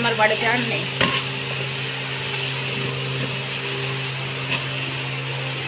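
A metal pan clanks.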